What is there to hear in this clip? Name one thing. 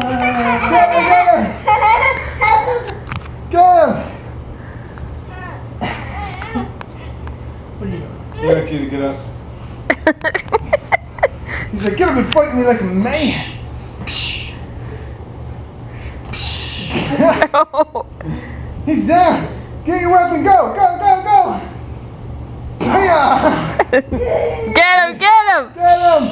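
A young man talks and laughs playfully nearby.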